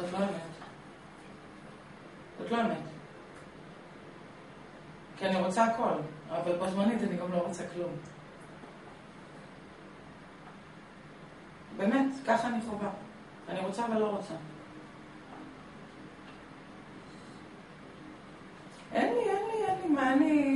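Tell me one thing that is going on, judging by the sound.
A young man speaks calmly and haltingly into a close microphone, with long pauses.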